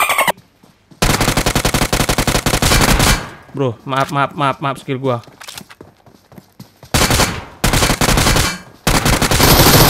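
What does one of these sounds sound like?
Rapid gunfire bursts out from a game.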